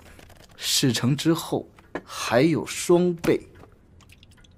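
A man speaks persuasively in a low voice, close by.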